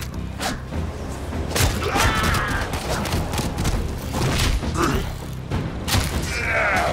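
A staff strikes an armoured enemy with sharp, heavy thuds.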